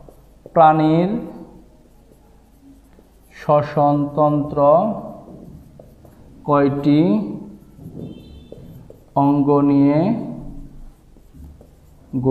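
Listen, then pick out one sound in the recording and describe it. A man speaks calmly and clearly, in short phrases, close by.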